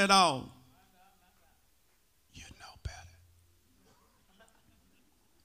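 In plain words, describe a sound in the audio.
A man speaks through a microphone, with pauses.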